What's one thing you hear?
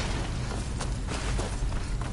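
Water rushes and splashes nearby.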